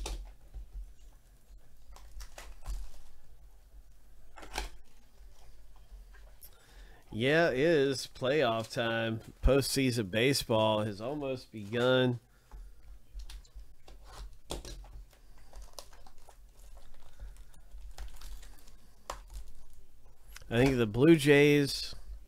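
Foil card packs crinkle and rustle as hands handle them.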